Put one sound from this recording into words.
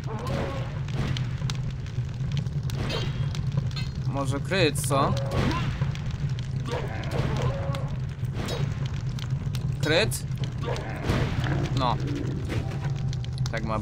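Flames crackle and roar close by.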